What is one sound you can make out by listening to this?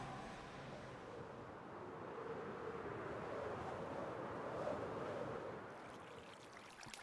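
Water rushes and bubbles steadily.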